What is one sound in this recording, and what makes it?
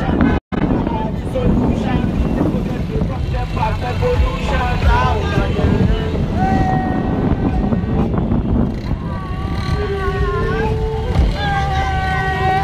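Motorcycle engines drone and rev close by.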